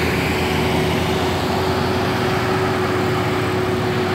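A motorcycle engine buzzes past.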